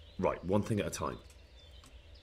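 A man speaks a few words calmly and briefly.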